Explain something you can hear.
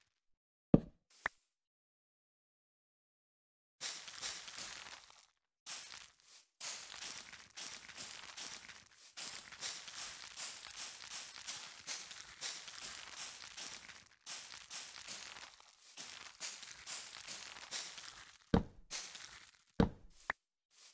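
Blocks break with short, sharp thuds.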